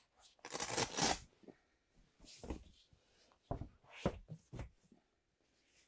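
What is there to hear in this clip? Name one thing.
Sofa cushions thump and rustle as they are moved.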